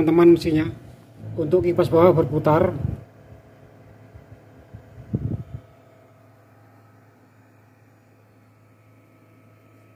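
A small fan motor hums steadily.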